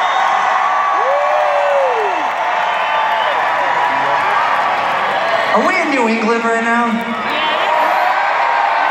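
A rock band plays loudly through a powerful sound system in a large echoing hall.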